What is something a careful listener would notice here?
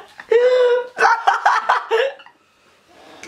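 Two young men laugh loudly close by.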